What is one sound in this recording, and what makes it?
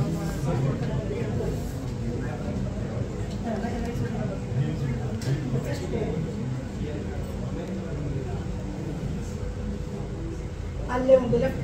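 Men talk and murmur together nearby in a crowd.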